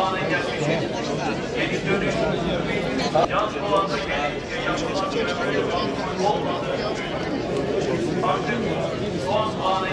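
A crowd of men and women chatter outdoors all around.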